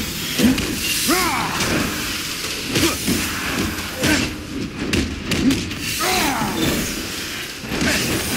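Creatures screech and shriek.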